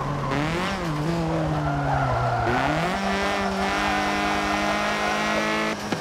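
Tyres squeal through a corner.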